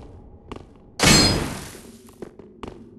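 A sudden whooshing burst of magic flares up.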